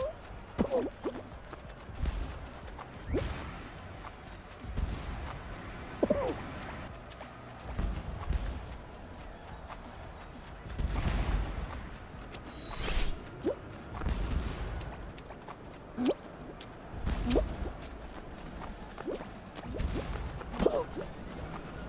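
Short springy game blips chirp now and then.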